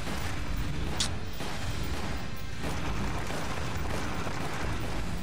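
Pistol shots crack.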